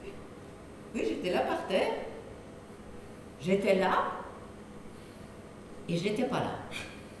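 An elderly woman speaks with animation.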